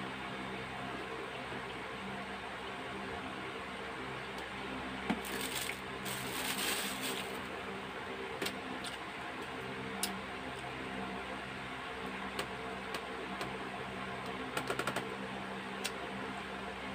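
Paper rustles and crinkles as it is handled close by.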